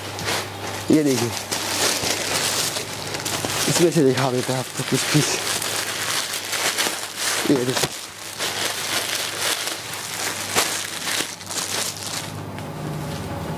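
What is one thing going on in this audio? Plastic packets rustle and crinkle as they are handled.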